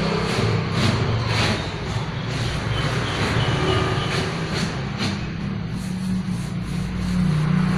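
A cloth rubs over a sticker on a board.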